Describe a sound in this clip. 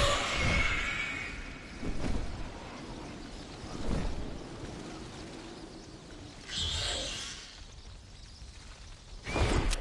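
Wind rushes steadily past a gliding figure.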